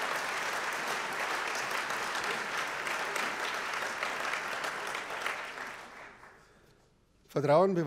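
A large audience applauds in a big hall and the applause fades away.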